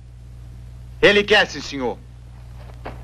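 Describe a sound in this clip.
A second man answers firmly.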